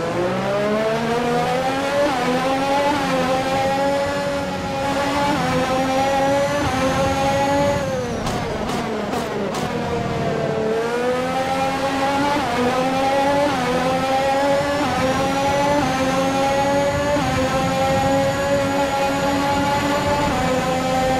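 A racing car engine screams, rising in pitch through each gear and dropping as it shifts.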